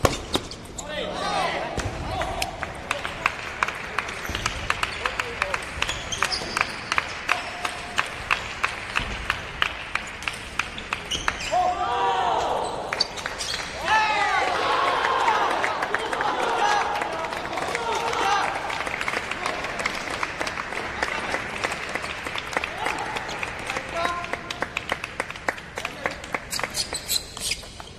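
Table tennis balls click rapidly on tables and paddles in a large echoing hall.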